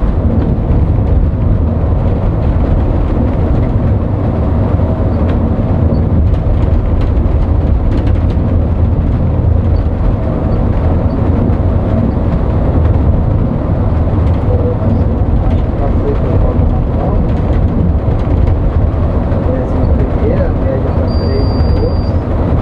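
A vehicle's engine rumbles steadily while driving.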